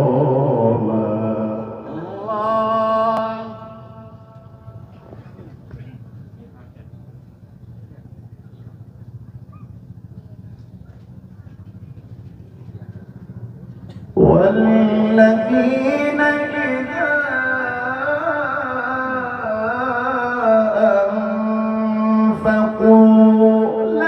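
A man sings in a drawn-out, melodic voice through a microphone and loudspeakers.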